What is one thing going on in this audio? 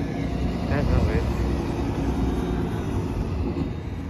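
A bus engine idles nearby with a low rumble.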